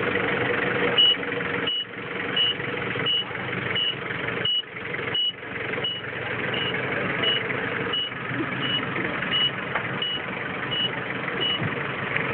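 A forklift's warning beeper beeps at an even pace.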